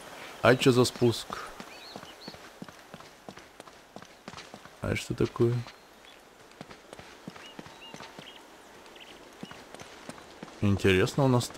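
Footsteps pad steadily on grass and stone.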